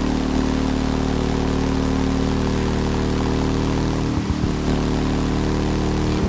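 A motorcycle engine roars steadily at high speed.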